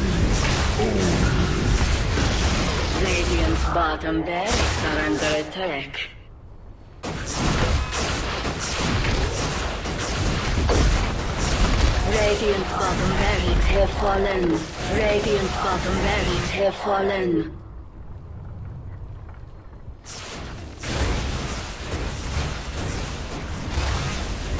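Weapons clash and magic spells burst in a hectic battle.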